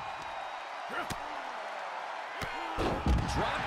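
A heavy body thuds onto a wrestling mat.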